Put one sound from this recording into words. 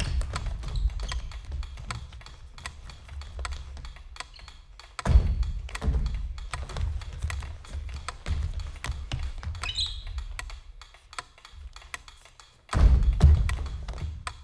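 Bare feet thud and slide on a wooden floor.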